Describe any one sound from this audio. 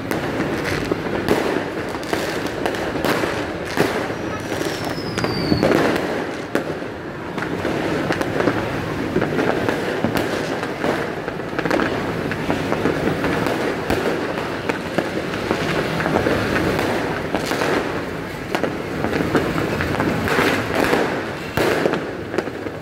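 Fireworks bang and crackle in the distance, many times over.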